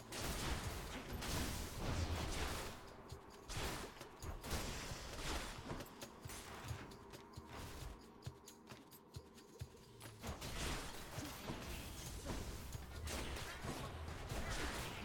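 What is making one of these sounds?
Game combat effects clash and burst in quick succession.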